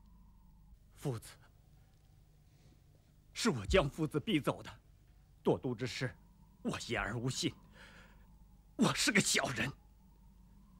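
A man speaks with strong emotion, close by.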